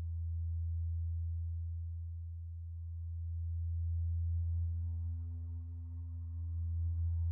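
A deep synthesizer drone hums steadily.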